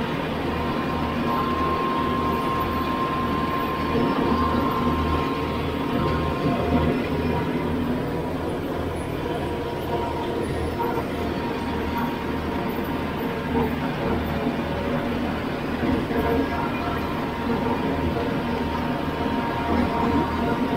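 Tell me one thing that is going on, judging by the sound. A tractor engine rumbles steadily close by.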